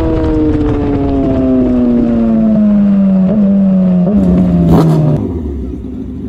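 A motorcycle engine drones at speed, its pitch falling as it slows.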